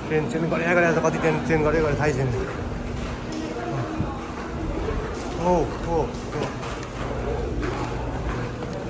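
Footsteps patter on stone stairs.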